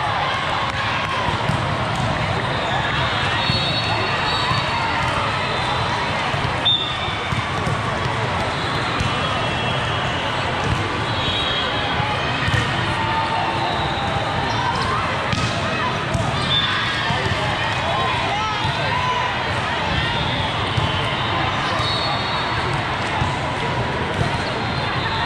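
A crowd chatters and cheers throughout a large echoing hall.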